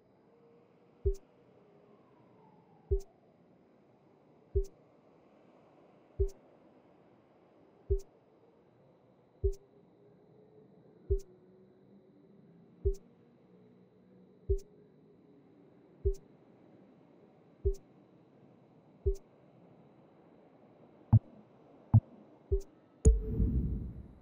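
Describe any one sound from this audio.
Soft menu clicks tick at a steady pace as selections change.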